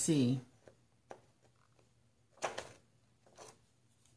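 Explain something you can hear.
Scissors snip through a sheet of paper.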